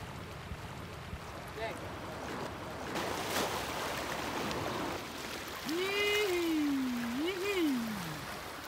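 Water sloshes softly as a person wades through shallow sea.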